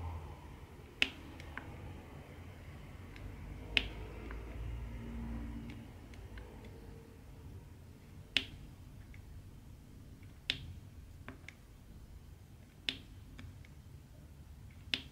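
Small plastic beads click sharply as a pen taps them into place.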